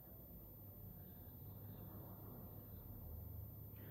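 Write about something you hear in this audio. A woman speaks calmly and close to a phone microphone.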